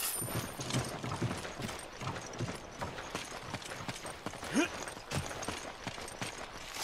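Footsteps run steadily over dirt ground.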